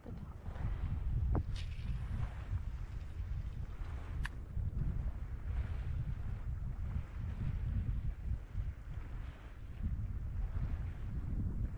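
Water laps and splashes gently.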